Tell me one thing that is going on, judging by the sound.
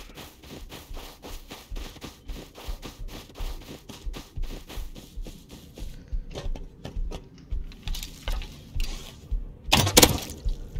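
Footsteps crunch on snow at a steady walking pace.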